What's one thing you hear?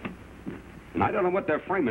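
A man speaks loudly and firmly, close by.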